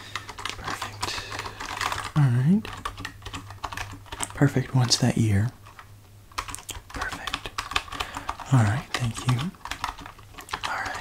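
Fingers type on a computer keyboard.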